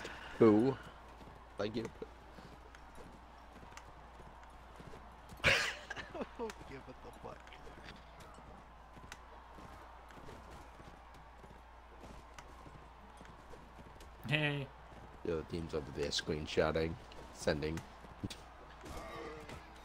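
Horse hooves thud on dry ground.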